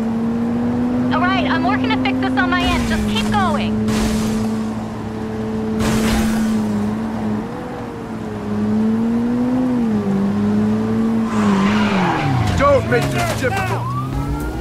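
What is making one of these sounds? Tyres screech as a car drifts around corners.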